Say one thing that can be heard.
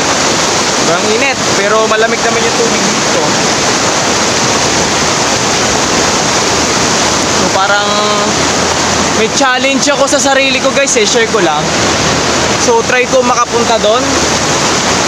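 A young man talks close by over rushing water.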